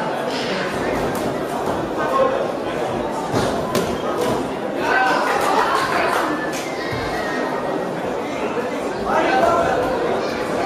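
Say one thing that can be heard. Boxing gloves thud on a boxer during an exchange of punches.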